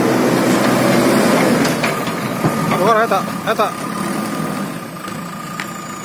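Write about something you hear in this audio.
A diesel engine idles nearby with a low rumble.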